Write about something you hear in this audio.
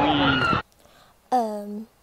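A young woman talks close by with animation.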